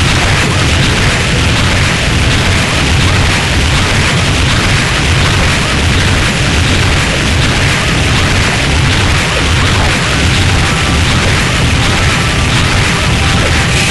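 Game music plays steadily with a pounding beat.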